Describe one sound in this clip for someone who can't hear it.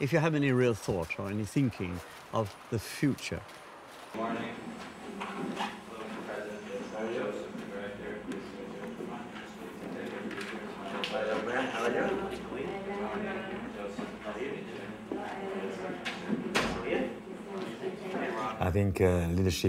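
A group of men and women chat and murmur.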